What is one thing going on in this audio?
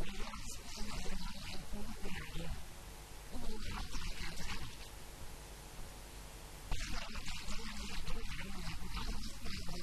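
An elderly man speaks with animation into a microphone, heard through loudspeakers.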